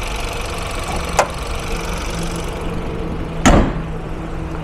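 A car hood slams shut with a loud thud.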